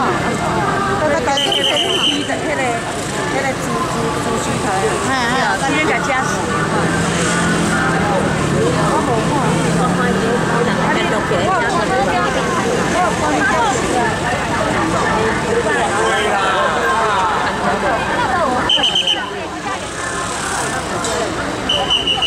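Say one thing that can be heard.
A crowd of men and women chatter loudly all around outdoors.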